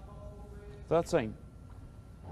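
A man calls out the score in a calm, clear voice.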